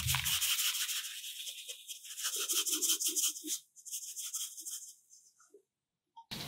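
Fine powder pours and patters onto a wet surface.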